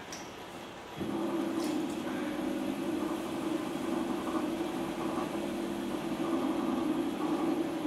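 Wet clay squelches and rubs under a potter's hands.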